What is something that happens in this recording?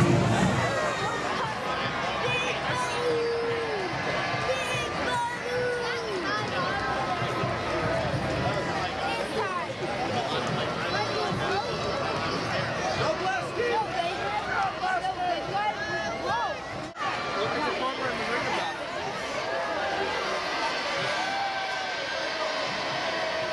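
A large outdoor crowd chatters and calls out all around, close by.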